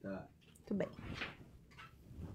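Hands brush and rustle against a soft fabric toy.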